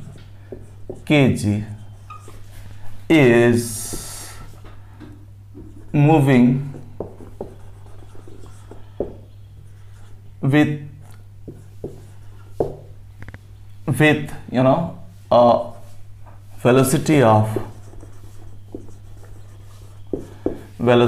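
A man speaks slowly and clearly, reading out as he writes, close by.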